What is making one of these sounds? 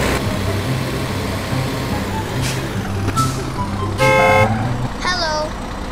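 A truck engine rumbles and shifts gears.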